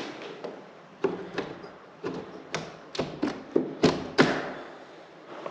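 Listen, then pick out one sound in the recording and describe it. A window latch creaks and scrapes as a hand works it.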